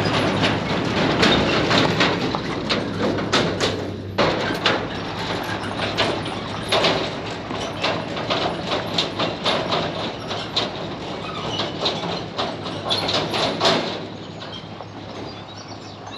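A truck engine rumbles steadily and fades into the distance.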